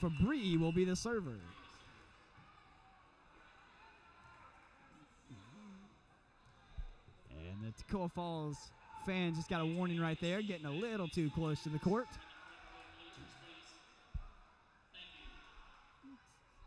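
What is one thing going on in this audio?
A volleyball is hit with dull thuds in a large echoing gym.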